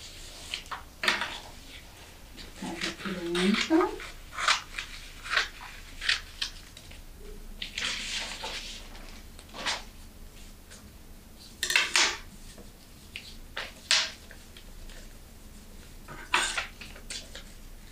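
Scissors snip sharply through paper.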